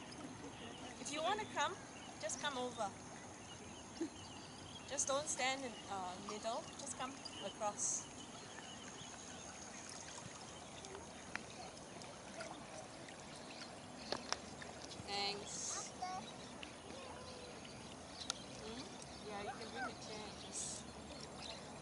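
Otters squeal and chirp sharply from the water.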